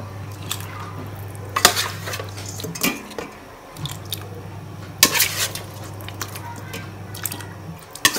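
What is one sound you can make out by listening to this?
Pieces of meat splash into water in a pot.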